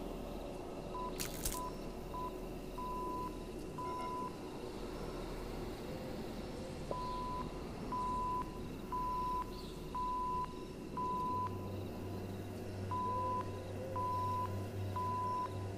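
A radio set beeps out short and long tones in a steady pattern.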